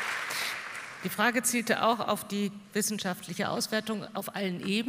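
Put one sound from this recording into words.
A middle-aged woman speaks into a microphone with animation, heard through loudspeakers in a large hall.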